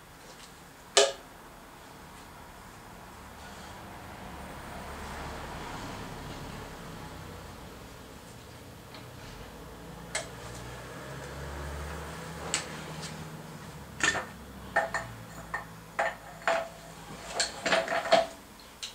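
Metal tools clank and knock against an old engine.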